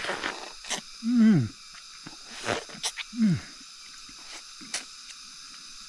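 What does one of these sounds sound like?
An elderly man sucks and slurps on juicy fruit.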